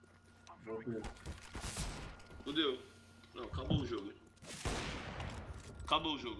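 A smoke grenade bursts and hisses.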